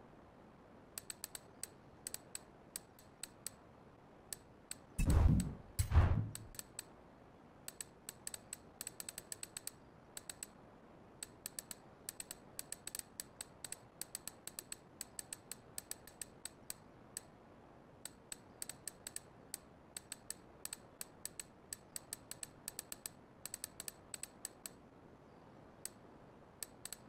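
Short menu clicks tick quickly, again and again, as options change.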